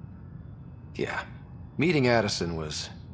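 A man answers briefly in a calm voice.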